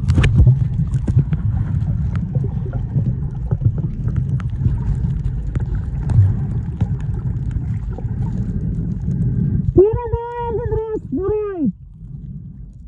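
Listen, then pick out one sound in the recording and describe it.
Water churns with a low, muffled rumble, heard from underwater.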